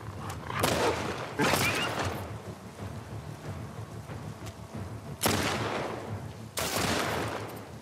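A pistol fires loud shots that echo outdoors.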